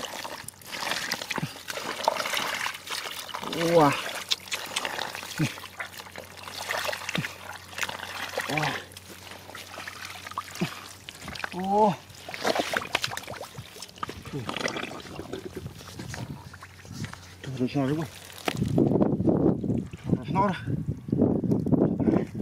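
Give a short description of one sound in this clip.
Thick mud squelches and splashes as hands dig through it.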